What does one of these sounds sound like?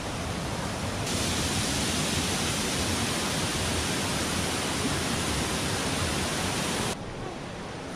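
A waterfall roars and splashes steadily.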